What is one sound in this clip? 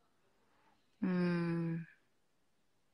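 A young woman hums a long drawn-out note.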